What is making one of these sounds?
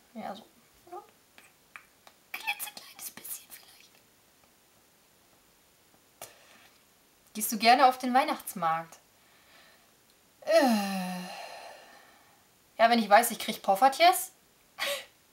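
A young woman speaks close by, with emotion and pauses.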